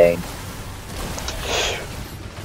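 A magical blast bursts with a rushing roar.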